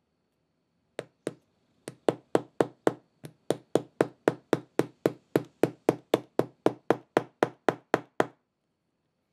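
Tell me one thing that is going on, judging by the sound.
A metal setting tool is struck on leather in a fast, even rhythm.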